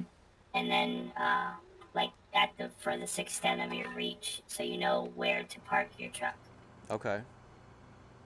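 A man talks close to a headset microphone.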